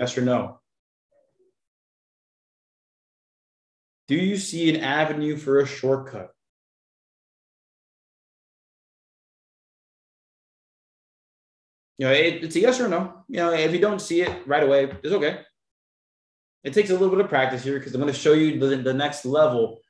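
A young man explains calmly into a close microphone, with pauses.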